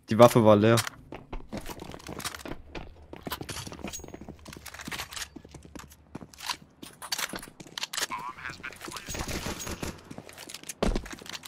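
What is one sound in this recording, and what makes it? Footsteps thud on hard ground.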